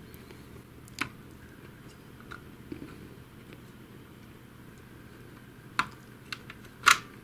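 Plastic parts click and rattle as they are fitted together.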